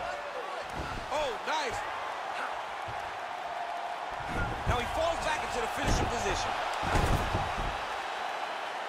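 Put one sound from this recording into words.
Bodies thud heavily onto a mat.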